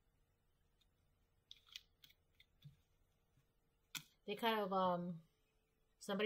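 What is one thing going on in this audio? Paper cards rustle and tap on a table.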